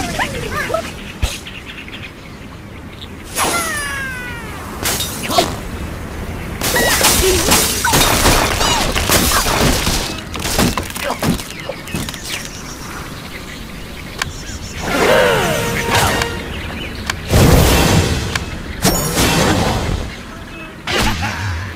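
A cartoon bird squawks as it is flung through the air.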